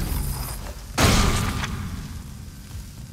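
A heavy boot stomps down with a wet crunch.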